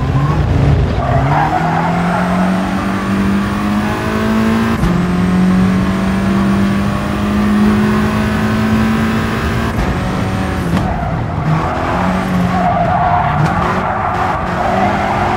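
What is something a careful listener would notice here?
Tyres screech through corners.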